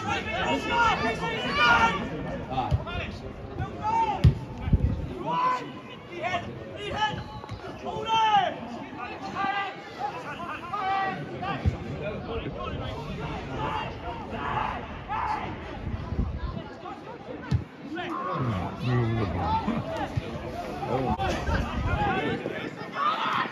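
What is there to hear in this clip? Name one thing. Men shout and call out to each other from across an open pitch.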